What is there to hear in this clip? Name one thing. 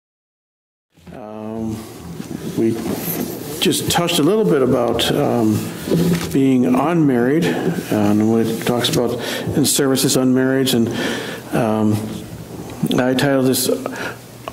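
An older man speaks steadily into a microphone, as if preaching.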